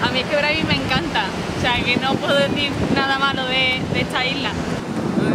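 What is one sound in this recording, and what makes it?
A young woman talks cheerfully close by.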